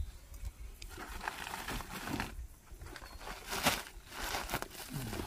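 Plastic sacks rustle as they are lifted.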